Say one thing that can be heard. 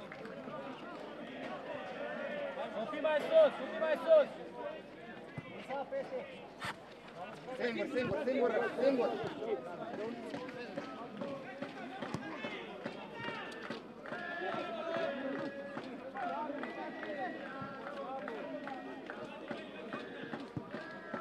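Men shout to each other across an open outdoor field.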